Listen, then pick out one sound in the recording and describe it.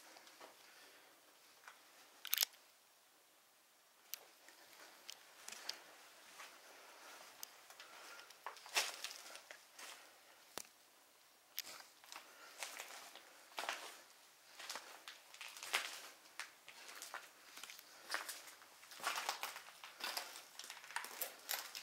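Footsteps crunch over debris and broken plaster.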